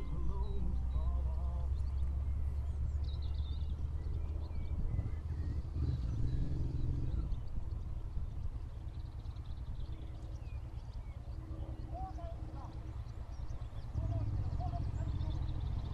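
A car drives along a distant road.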